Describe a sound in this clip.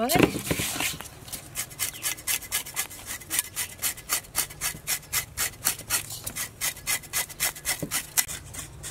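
Hands scrub fish with salt in quick, steady strokes.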